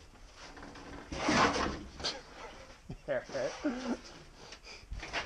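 Wooden boards scrape and knock.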